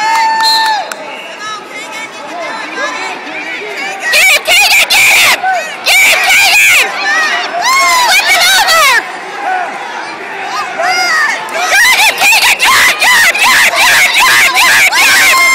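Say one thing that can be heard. Adult spectators shout encouragement in an echoing gymnasium.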